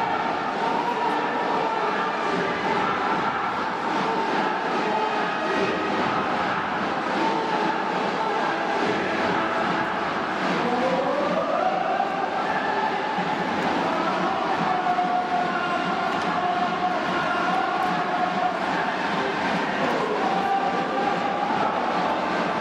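A brass band plays a rousing tune.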